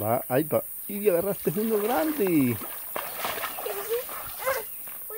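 Water splashes around wading legs.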